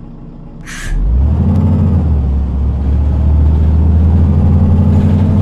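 A bus engine hums low and steady from inside the cab.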